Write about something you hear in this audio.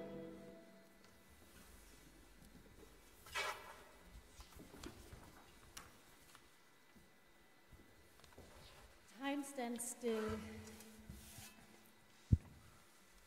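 Musicians play soft, sparse notes in an echoing hall.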